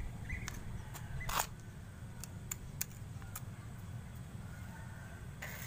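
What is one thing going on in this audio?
A hand scrapes and crumbles dry soil.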